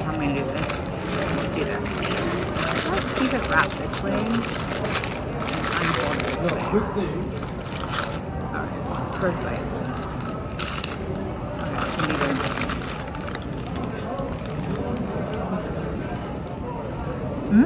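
A paper wrapper crinkles.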